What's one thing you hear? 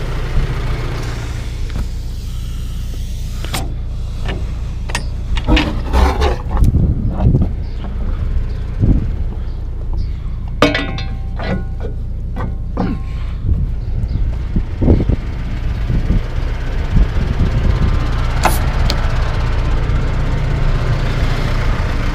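A tractor engine idles with a steady low rumble.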